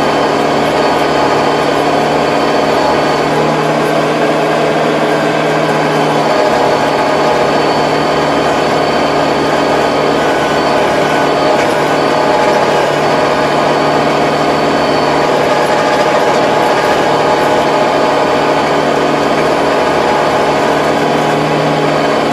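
A rotary tiller churns through soil with a rattling clatter.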